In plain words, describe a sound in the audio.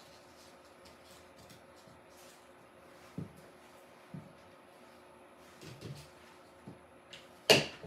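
Leafy flower stems rustle and tap softly against a table.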